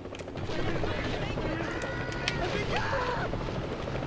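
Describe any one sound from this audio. A motorboat engine drones.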